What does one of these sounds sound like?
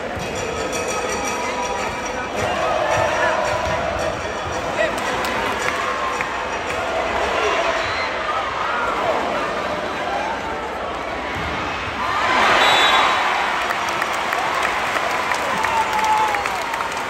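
A large crowd cheers and chants in a big echoing arena.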